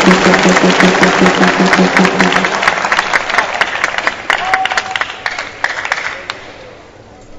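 A crowd applauds in a large indoor arena.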